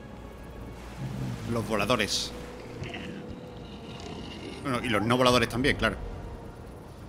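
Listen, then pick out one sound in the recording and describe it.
A giant crab-like creature growls and roars.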